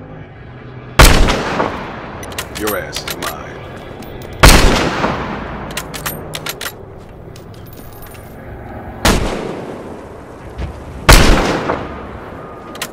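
A sniper rifle fires loud booming shots that echo away.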